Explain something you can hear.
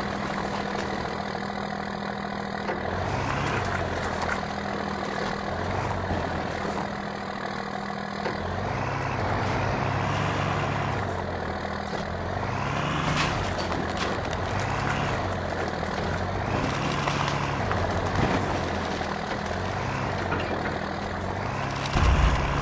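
An off-road buggy bumps and thuds as it tumbles through brush.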